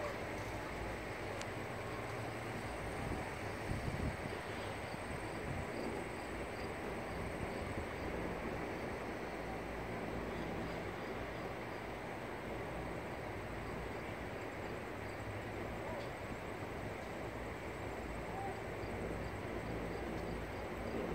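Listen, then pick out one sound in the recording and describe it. Wind blows steadily across the open air outdoors.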